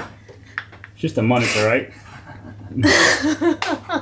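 A young woman talks and laughs close by.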